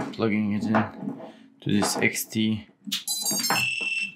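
A battery connector snaps into place.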